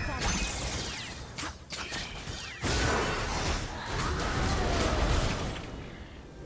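Video game spell effects whoosh and crackle during a fight.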